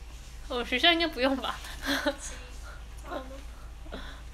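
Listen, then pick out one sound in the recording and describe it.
A young person laughs close to a microphone.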